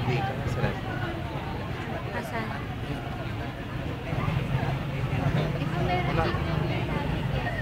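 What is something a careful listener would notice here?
A crowd of young people chatters outdoors.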